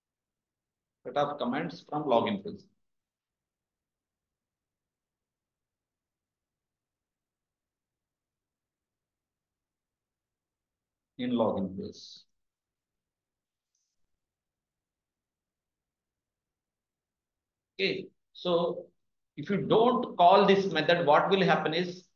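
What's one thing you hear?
A young man talks calmly into a microphone, with pauses.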